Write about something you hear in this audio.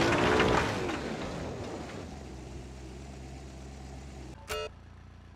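An off-road buggy engine idles with a low rumble.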